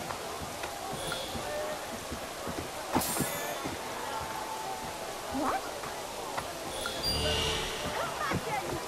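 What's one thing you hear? Coins jingle as small items are picked up.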